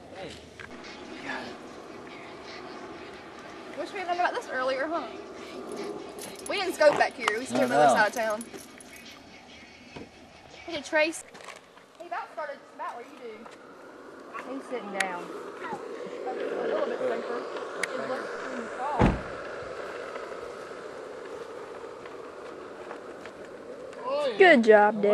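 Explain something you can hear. Skateboard wheels rumble steadily on asphalt.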